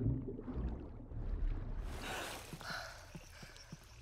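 Water splashes as a swimmer breaks the surface.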